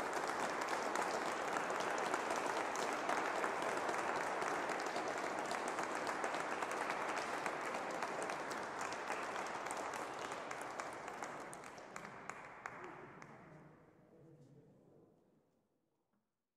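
An audience applauds in a large echoing hall, and the clapping slowly fades away.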